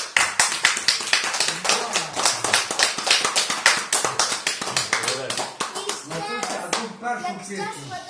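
People clap their hands in applause nearby.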